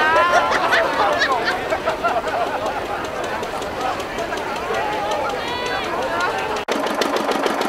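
A crowd chatters and calls out loudly outdoors.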